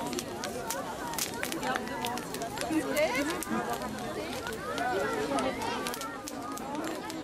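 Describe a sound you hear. A crowd of people talk and chatter outdoors.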